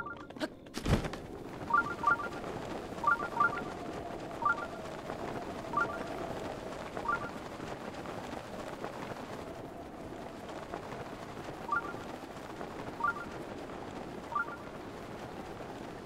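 Wind rushes steadily past during a long glide.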